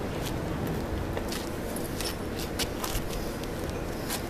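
Shoes scuff and tap on concrete close by.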